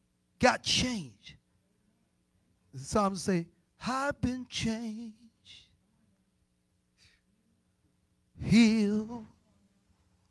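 A man preaches with animation into a microphone, heard through loudspeakers, in short bursts with pauses.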